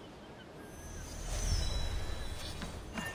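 A wooden gangplank swings down with a low rumble.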